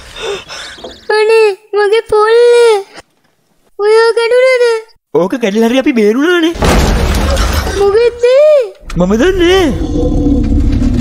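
A young boy cries out in fright.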